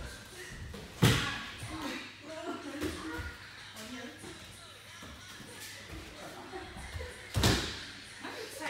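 Bodies slam heavily onto a padded mat.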